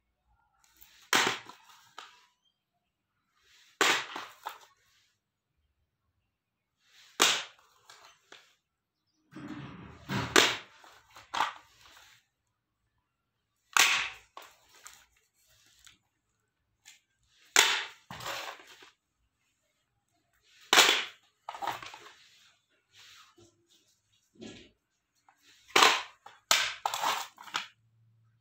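Plastic cassette cases clack and rattle against a hard floor every few seconds.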